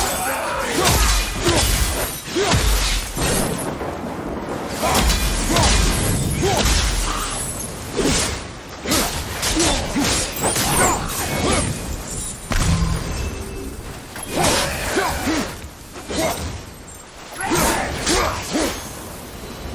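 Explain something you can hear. Blades swish and slash through the air.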